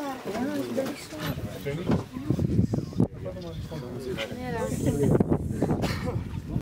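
Several young women and a man talk excitedly close by.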